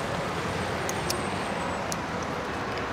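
A lighter clicks.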